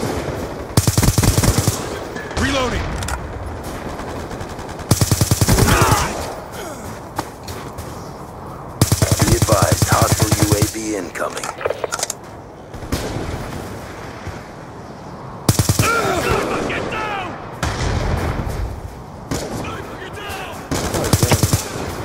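Rapid automatic gunfire rattles in short bursts.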